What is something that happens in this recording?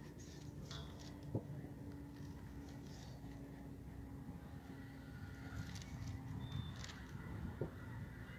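A man reads aloud calmly outdoors.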